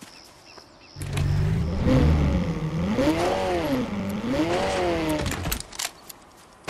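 A car engine revs and roars, rising and falling in pitch.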